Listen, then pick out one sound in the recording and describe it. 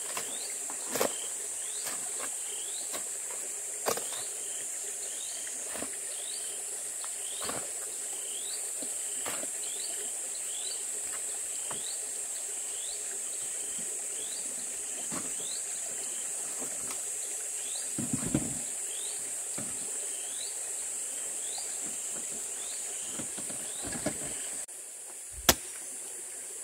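A hoe strikes and scrapes loose earth.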